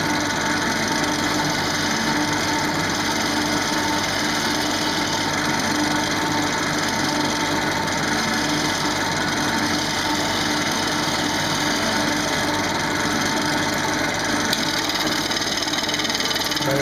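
A chisel scrapes and shaves against spinning wood.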